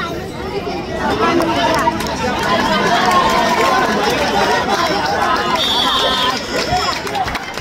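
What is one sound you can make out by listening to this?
A crowd of spectators cheers loudly.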